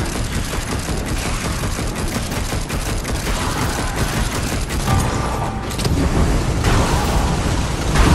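Fiery explosions roar and crackle.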